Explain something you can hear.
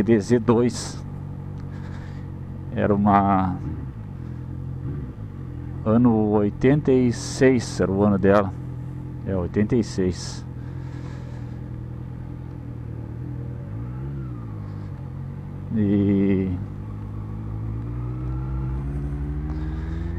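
A motorcycle engine hums steadily while riding and revs up toward the end.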